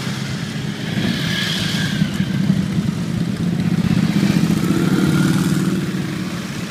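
Motorcycle engines rev up and roar close by as bikes pass.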